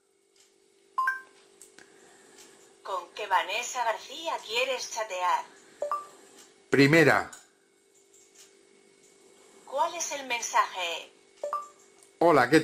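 A phone gives short electronic beeps.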